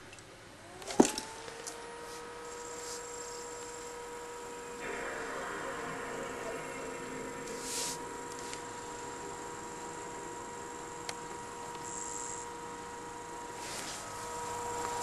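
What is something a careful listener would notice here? A disc whirs steadily as it spins in a console.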